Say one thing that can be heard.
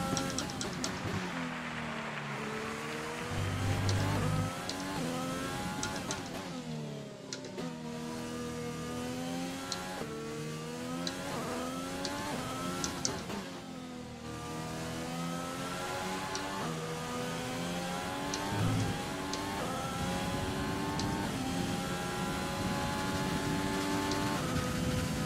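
A racing car engine roars, rising in pitch through each gear and dropping sharply at each shift and braking.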